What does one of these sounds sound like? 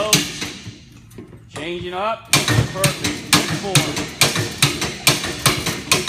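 A sledgehammer strikes metal repeatedly with sharp, ringing clangs.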